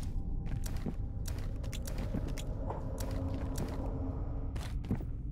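Soft menu clicks sound as items are moved around.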